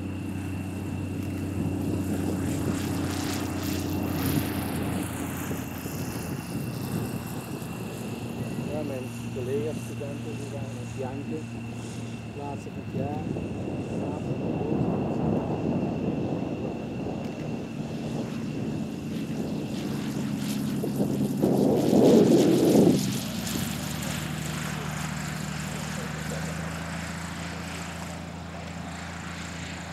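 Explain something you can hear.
A piston-engine aerobatic plane's propeller drones as it taxis along a runway.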